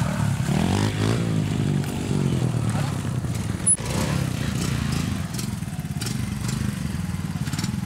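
Several motorcycle engines idle and rev nearby.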